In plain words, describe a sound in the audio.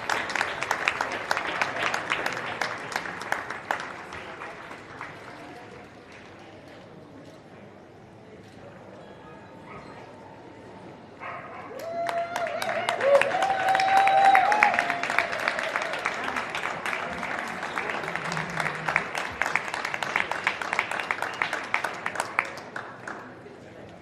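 A large indoor crowd claps and applauds in an echoing hall.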